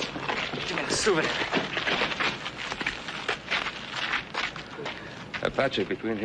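Several men murmur and talk at once nearby.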